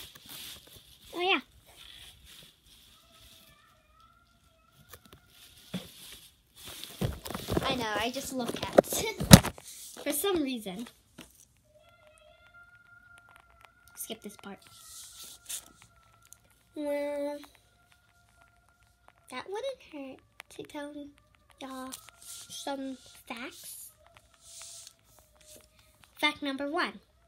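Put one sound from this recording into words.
A young girl talks and sings close by.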